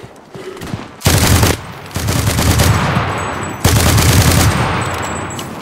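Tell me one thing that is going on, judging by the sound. A rifle fires loud shots that boom and echo away.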